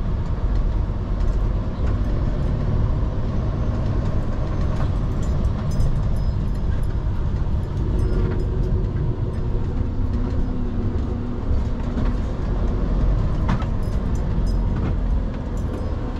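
Loose parts rattle and click inside the cab.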